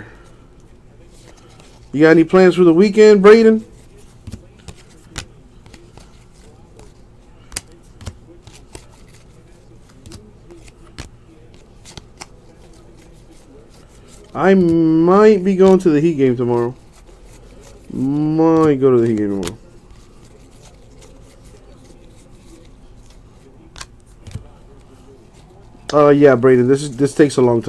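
Playing cards slide and flick softly as they are sorted by hand.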